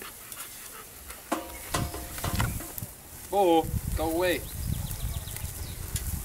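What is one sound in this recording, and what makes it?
Tongs clink against a grill grate.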